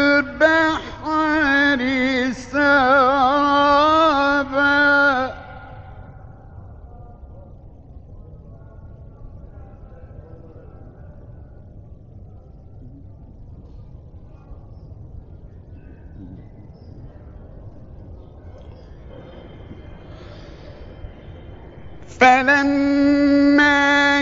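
A man chants in a long, melodic voice through an old recording, pausing in between.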